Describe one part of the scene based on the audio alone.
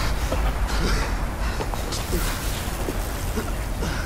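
Flames crackle close by.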